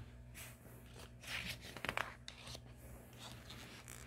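A paper page turns.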